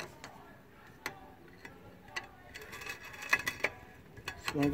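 A metal tool taps and scrapes against rusty metal close by.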